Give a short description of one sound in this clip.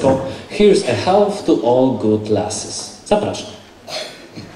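Men sing together into microphones.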